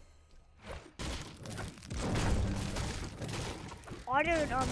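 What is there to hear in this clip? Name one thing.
A pickaxe smashes through wooden boards with loud cracking blows.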